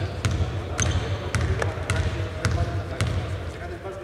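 A basketball bounces on a hardwood court in a large echoing empty arena.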